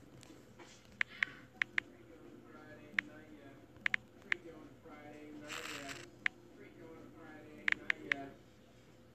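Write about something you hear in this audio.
Touchscreen keyboard taps click in quick bursts.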